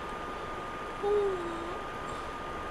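A young woman briefly voices a short sound, close to a phone microphone.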